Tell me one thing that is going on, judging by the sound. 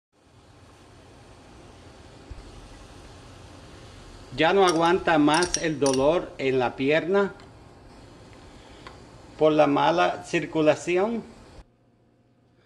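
Water bubbles and boils in a pan.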